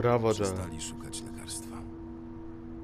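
A man speaks quietly and wearily.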